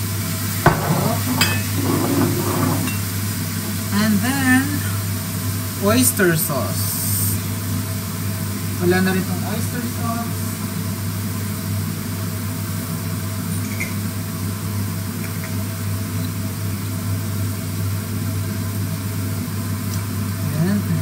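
Food sizzles steadily in a hot frying pan.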